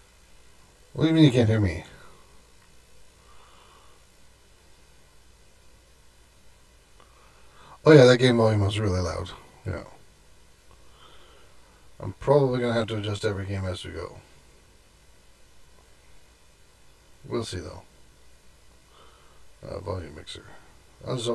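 A man talks calmly and close into a microphone, in short bursts with pauses.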